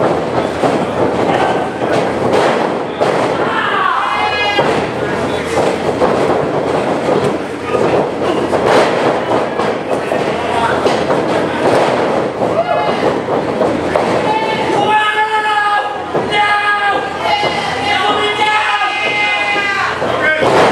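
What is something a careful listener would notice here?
A crowd cheers and shouts in a large echoing room.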